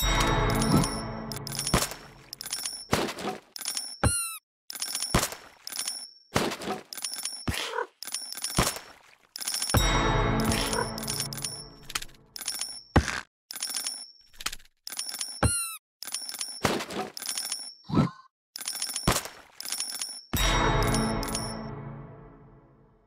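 Game sound effects of coins chiming and hits land in quick bursts.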